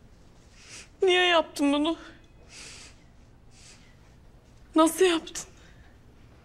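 A young woman speaks through tears.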